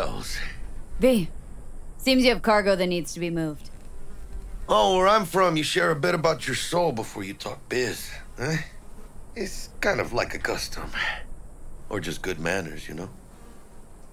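A man speaks calmly and casually, close by.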